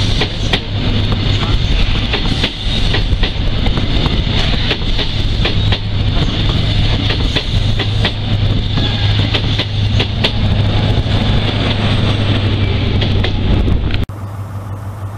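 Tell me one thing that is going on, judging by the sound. A train roars past at speed close by, its engine droning low.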